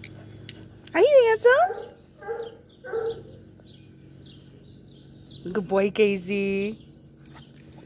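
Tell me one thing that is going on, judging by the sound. A hound bays with long wavering howls.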